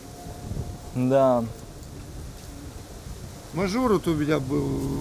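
A man speaks nearby in a calm voice.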